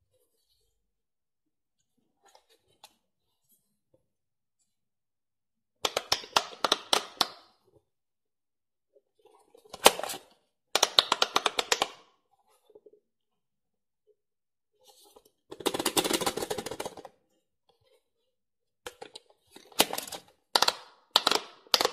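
Fingers press soft rubber buttons with faint clicks.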